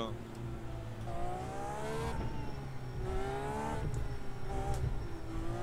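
A racing car engine revs high and rises in pitch as it shifts through gears.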